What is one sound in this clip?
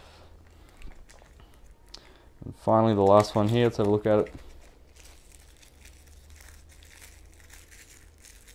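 A small plastic bag crinkles softly between fingers.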